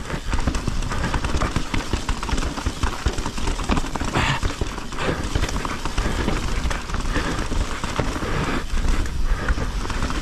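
Bike tyres rattle and crunch over a rocky dirt trail.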